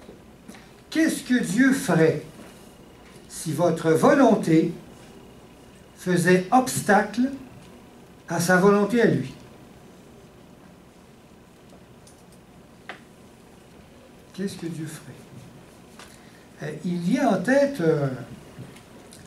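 A middle-aged man speaks calmly into a headset microphone, with long pauses.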